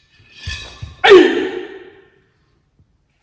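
A man gives a sharp martial arts shout.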